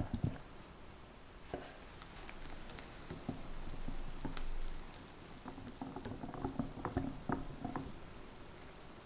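A wire whisk clinks against a glass bowl.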